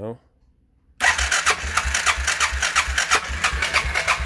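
An engine starts and idles with a steady, rapid chug.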